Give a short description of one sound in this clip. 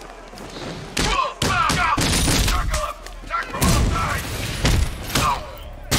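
Heavy punches land with loud thuds in a brawl.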